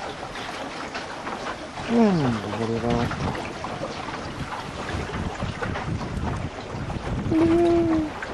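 Wind blows noisily across the open water.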